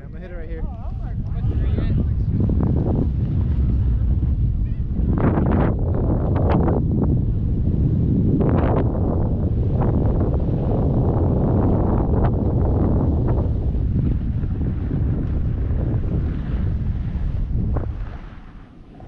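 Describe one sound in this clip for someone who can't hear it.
Wind rushes and rumbles loudly past at speed.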